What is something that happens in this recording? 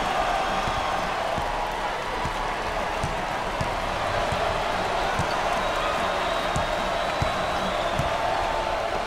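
A basketball bounces repeatedly on a wooden court.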